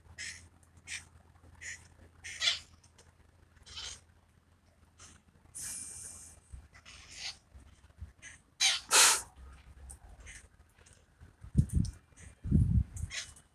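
Parakeets screech in short, harsh calls.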